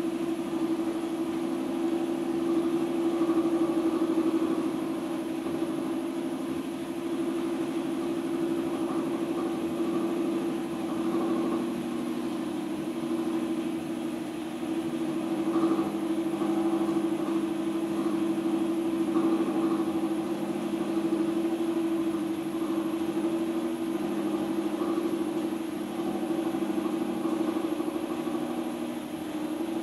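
Wet clay squelches softly under a potter's hands.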